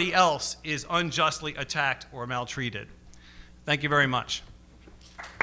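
A man speaks into a microphone in a calm, lecturing voice.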